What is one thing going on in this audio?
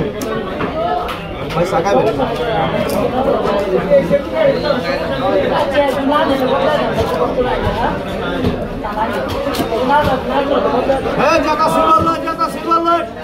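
A knife chops and scrapes through raw fish.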